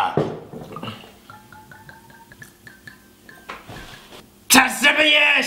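Liquid glugs as it is poured from a bottle.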